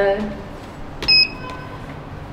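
An elevator chimes once with a bright ding.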